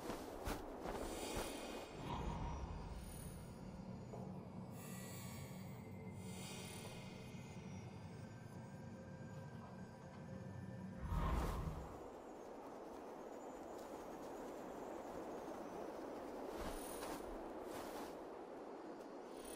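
A large bird flaps its wings in flight.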